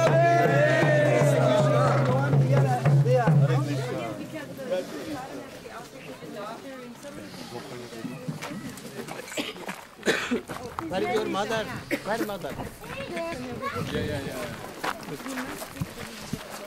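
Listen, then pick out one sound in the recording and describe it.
Several men talk and murmur close by.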